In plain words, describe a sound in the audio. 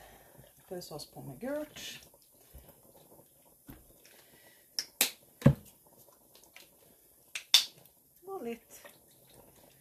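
A plastic squeeze bottle squirts liquid onto wet yarn.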